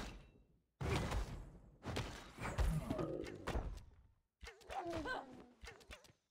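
Small cannons fire in quick bursts of blasts.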